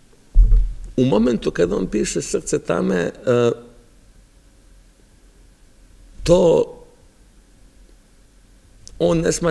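A man speaks calmly and expressively into a microphone, with pauses.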